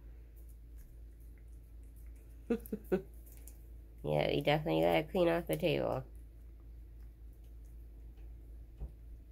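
A cat crunches dry food close by.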